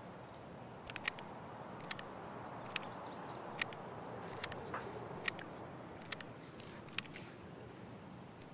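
Small items click softly as they are moved around.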